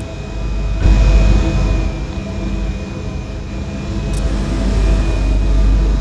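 A train rumbles past at speed, its wheels clattering on the rails.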